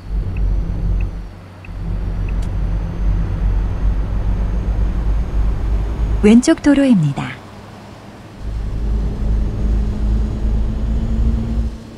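A truck engine rumbles steadily while driving.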